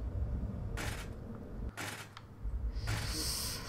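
Footsteps tread on a metal grating.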